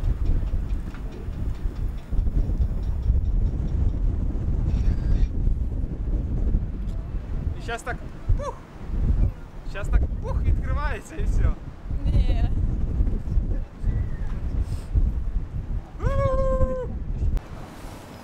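Strong wind rumbles against the microphone outdoors.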